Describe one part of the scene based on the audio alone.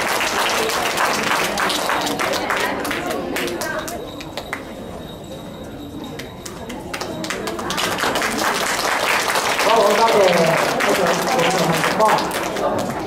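Music plays through loudspeakers in a large hall.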